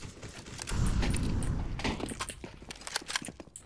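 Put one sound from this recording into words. A rifle clicks and rattles as it is picked up.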